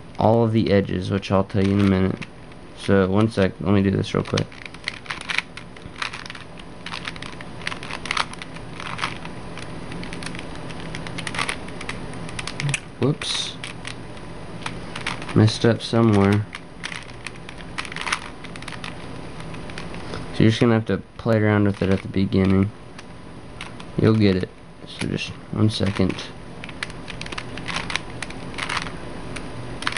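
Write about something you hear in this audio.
Plastic puzzle cube pieces click and rattle up close.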